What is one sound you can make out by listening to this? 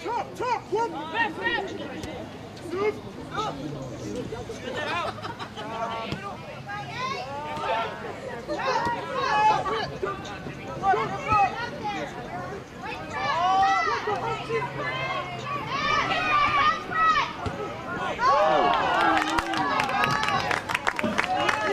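Spectators shout and cheer outdoors, louder toward the end.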